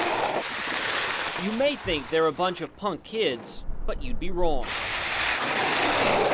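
Skateboard wheels roll and rumble over pavement.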